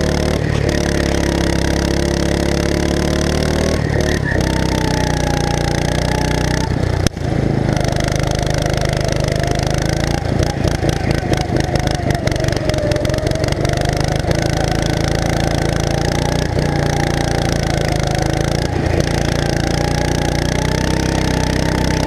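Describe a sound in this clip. A go-kart engine buzzes loudly and steadily, rising and falling in pitch as it speeds up and slows.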